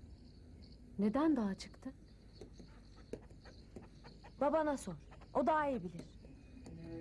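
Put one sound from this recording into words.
A woman answers calmly nearby.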